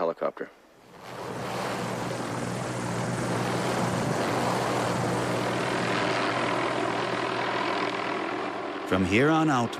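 A helicopter engine whines and its rotor thuds steadily.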